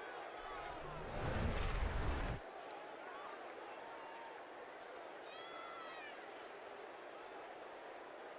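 A large crowd cheers and murmurs in a stadium.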